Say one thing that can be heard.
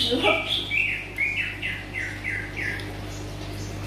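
A baby monkey squeaks in high, quick chirps.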